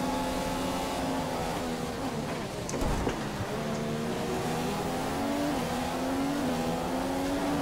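A racing car engine slows sharply and then builds speed again.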